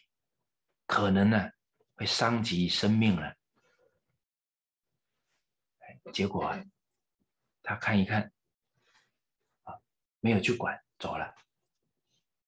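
A middle-aged man speaks calmly and slowly into a microphone, with pauses between phrases.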